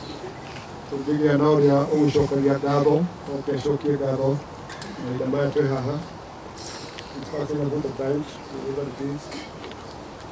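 A man sings slowly and mournfully outdoors.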